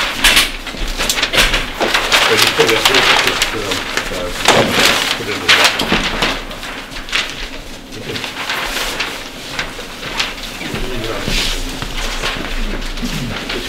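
Large sheets of paper rustle and crinkle.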